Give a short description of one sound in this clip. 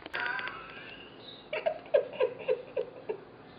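A young woman laughs close by in bursts.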